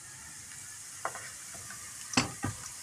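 A spatula scrapes vegetables into a pan.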